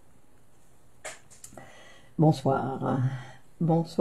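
A middle-aged woman speaks calmly and warmly, close to a microphone.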